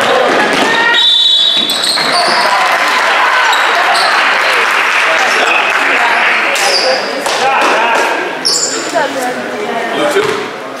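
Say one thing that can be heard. A crowd cheers and shouts loudly in an echoing gym.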